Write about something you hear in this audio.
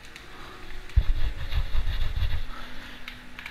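A locked door rattles and thuds.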